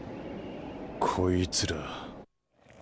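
A man speaks briefly in a low, weary voice.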